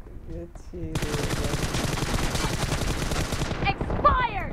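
A rifle fires a long, rapid burst of shots nearby.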